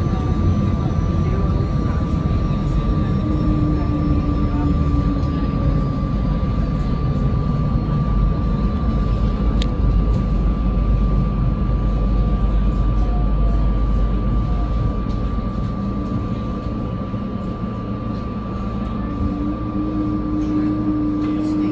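A train rumbles along the tracks and gradually slows to a stop.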